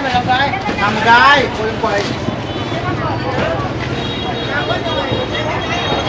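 Several men and women talk and call out nearby outdoors.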